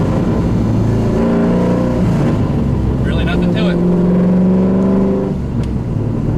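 A car engine revs up and drops as gears change.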